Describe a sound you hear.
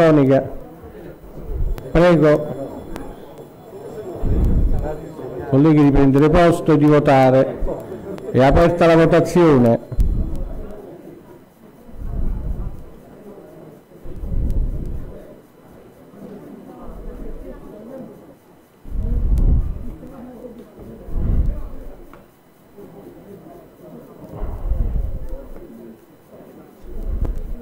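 An elderly man speaks into a microphone in a measured tone.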